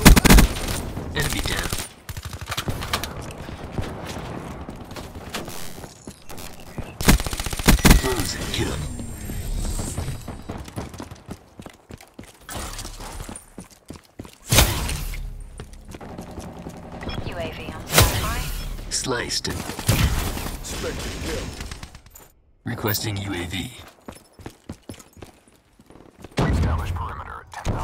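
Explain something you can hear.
Gunfire bursts out in loud, sharp volleys.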